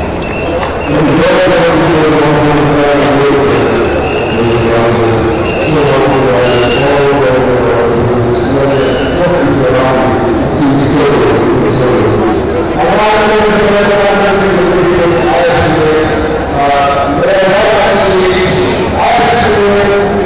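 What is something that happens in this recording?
A middle-aged man speaks through a microphone and loudspeakers outdoors in an open stadium.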